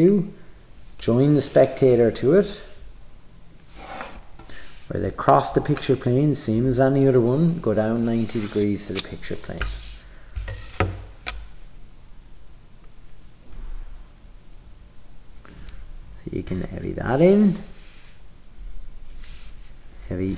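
A plastic ruler slides and taps on paper.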